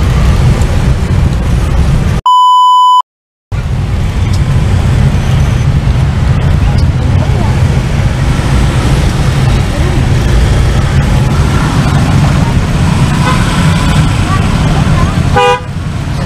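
Many motorcycle engines rumble and idle nearby in heavy traffic.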